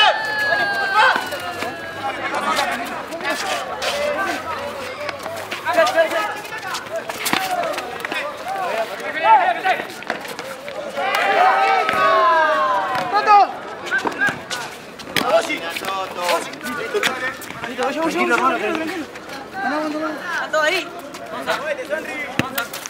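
A football is kicked with sharp thuds on a hard court.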